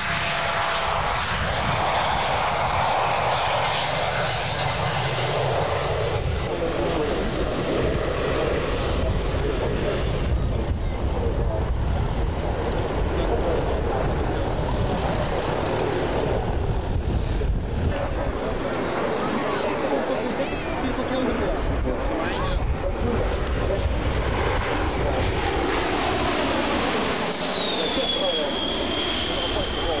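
A jet airliner's engines roar loudly.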